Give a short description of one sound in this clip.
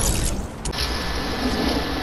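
A pickaxe swings and strikes in a video game.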